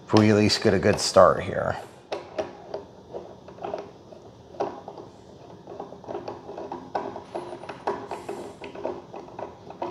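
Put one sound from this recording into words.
A screwdriver clicks faintly as it turns a screw.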